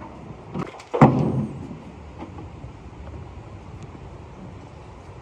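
Liquid clay pours and splashes into a bucket.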